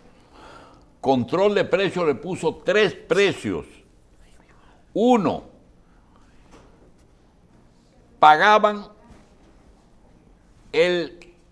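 An elderly man speaks with animation into a close microphone, in short emphatic bursts.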